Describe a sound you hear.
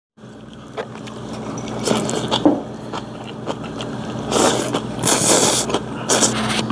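A man slurps noodles loudly, close by.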